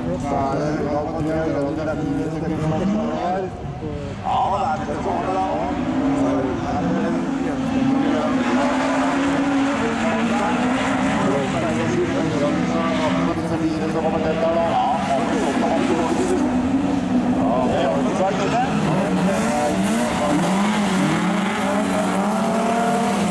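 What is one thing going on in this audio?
Rally car engines roar and rev loudly outdoors.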